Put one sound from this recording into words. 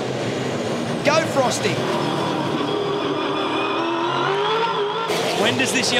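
A racing car engine revs and shifts gears up and down in quick bursts.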